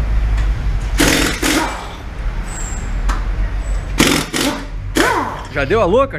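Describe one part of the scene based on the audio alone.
A pneumatic impact wrench whirs in loud bursts.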